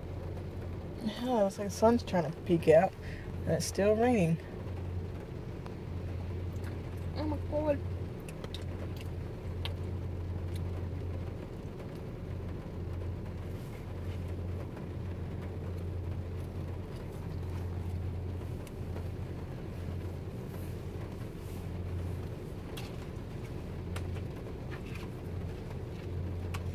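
A car's engine and road noise hum low inside a moving car.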